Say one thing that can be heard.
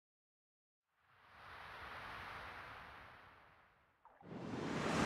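A soft whoosh swells and fades away.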